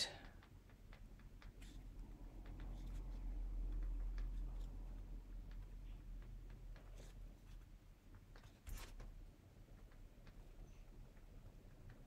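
A pen scratches softly on card.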